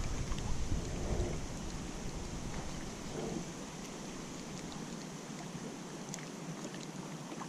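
Water laps gently against a kayak's hull.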